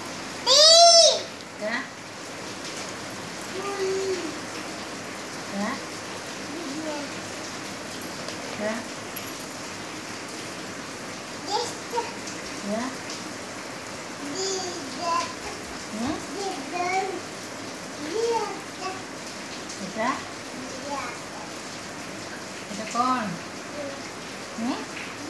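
A small child babbles and repeats words close by.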